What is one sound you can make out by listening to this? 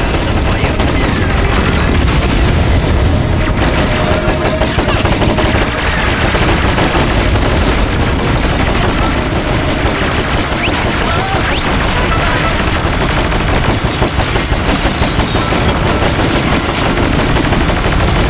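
Gunfire and explosions crackle and boom in a battle.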